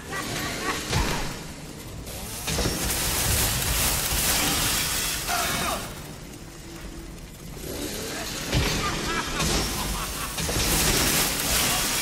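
A chainsaw blade grinds against metal.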